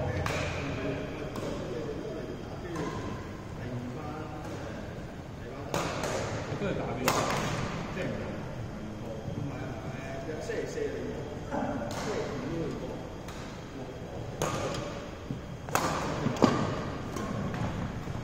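Rackets smack shuttlecocks with sharp pops that echo around a large hall.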